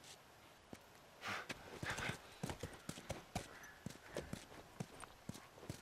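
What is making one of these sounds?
Footsteps fall steadily on hard pavement.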